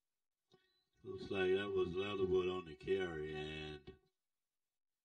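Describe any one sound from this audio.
A man calls out loudly nearby.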